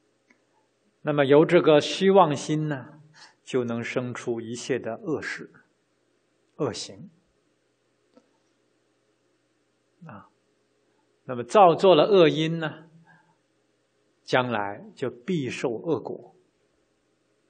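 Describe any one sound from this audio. A middle-aged man speaks calmly into a microphone, pausing between phrases.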